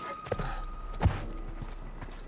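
A body thumps against a wooden railing.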